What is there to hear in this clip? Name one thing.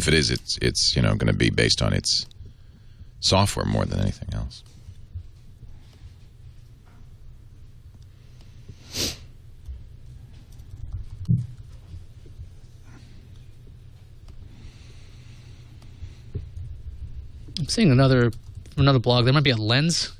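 A middle-aged man speaks into a microphone close by, in short bursts with long pauses.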